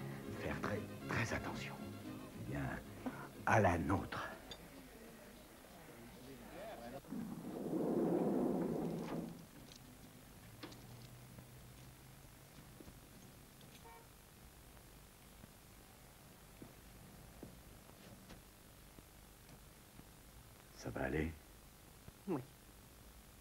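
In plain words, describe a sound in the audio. A man talks quietly at close range.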